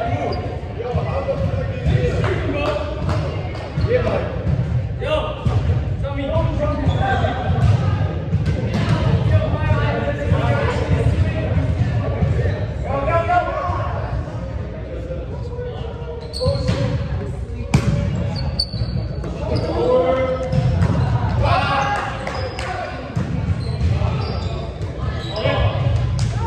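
Young men call out and chatter in a large echoing hall.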